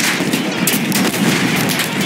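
A tank cannon fires with a heavy boom.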